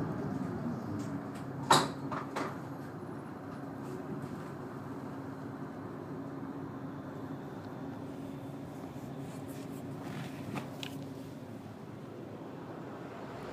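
A bus engine hums steadily while the bus drives along.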